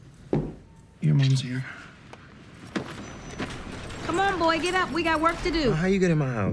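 A woman speaks firmly, close by.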